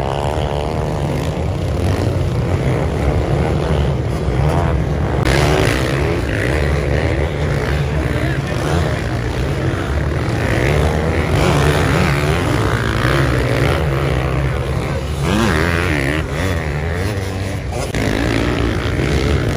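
Motorbike engines rev and whine loudly close by.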